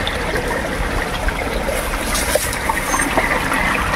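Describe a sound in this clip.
A shallow stream trickles over rocks.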